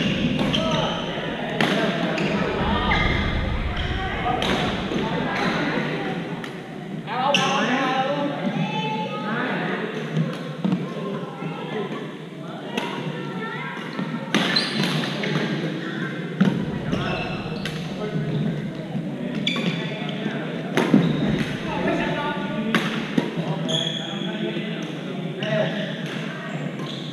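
Players' voices call out and chatter with echo in the hall.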